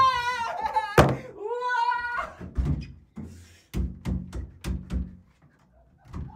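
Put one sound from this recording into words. Feet thump on a hard floor.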